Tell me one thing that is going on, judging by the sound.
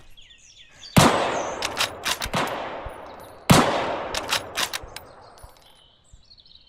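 A rifle fires loud shots that echo away outdoors.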